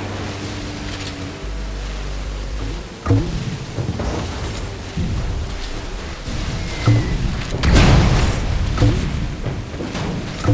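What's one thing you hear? Water splashes and sprays around a speeding boat.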